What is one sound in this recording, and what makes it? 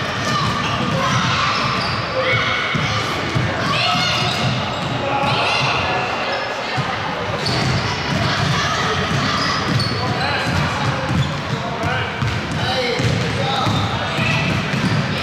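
Children shout and call out during a game.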